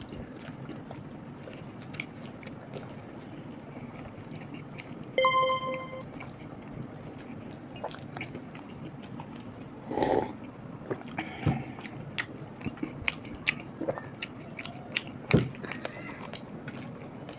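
A man and a woman chew and crunch food close by.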